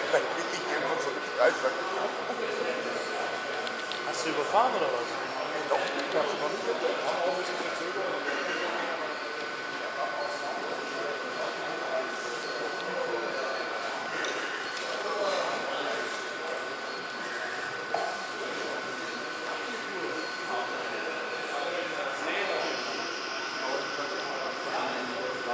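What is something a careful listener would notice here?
Two men talk calmly nearby in a large echoing hall.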